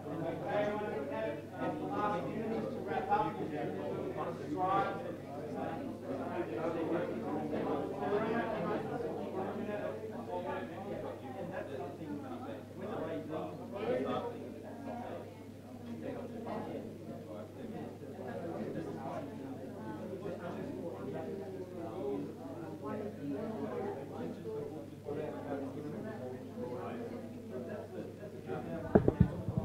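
People in a small audience murmur and chat quietly.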